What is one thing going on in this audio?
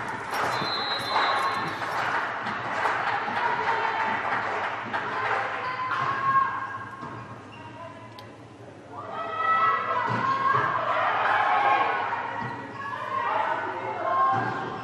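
Young women shout and call out in a large echoing hall.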